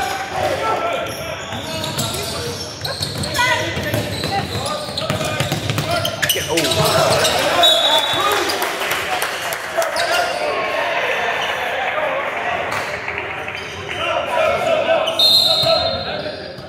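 Young men shout and call out to each other across an echoing gym.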